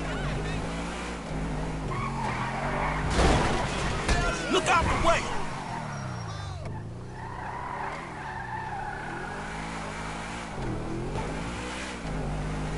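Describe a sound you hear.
A sports car engine hums and revs up and down.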